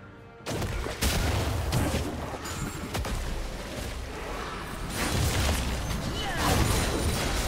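Magic blasts burst and crackle as game fighters clash.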